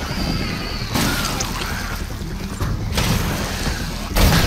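A gun fires several loud, rapid shots.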